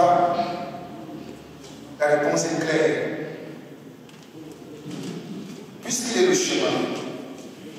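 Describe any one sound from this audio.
A group of men and women sing together in a reverberant room.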